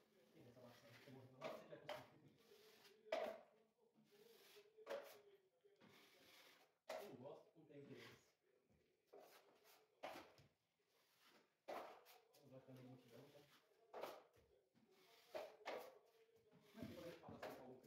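A trowel scrapes plaster across a wall.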